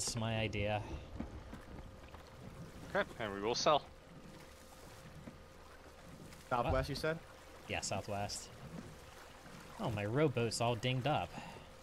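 Water laps gently against a wooden boat.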